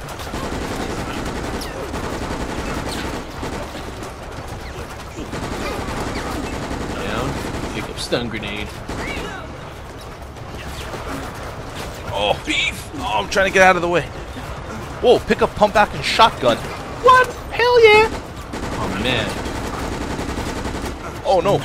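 Gunshots fire in short bursts.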